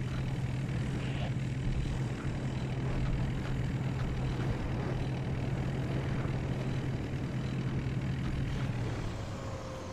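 Tank tracks clatter on the road.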